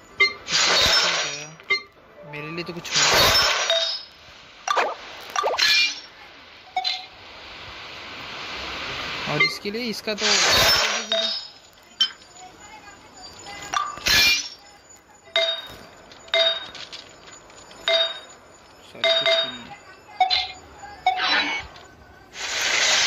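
Short electronic chimes ring out as menu items are picked.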